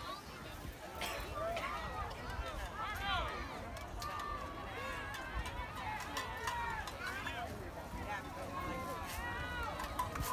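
Children chatter and call out nearby outdoors.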